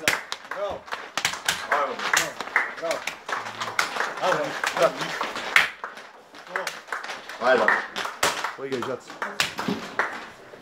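Hands slap together in high fives.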